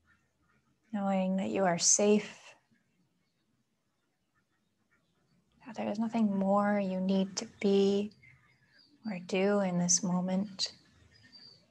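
A woman speaks calmly and softly, close by.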